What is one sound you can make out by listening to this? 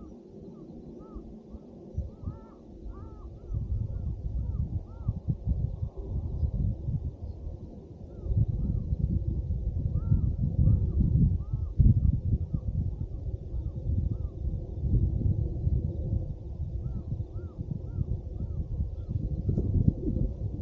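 Gusty wind rumbles across the microphone outdoors, growing stronger after a few seconds.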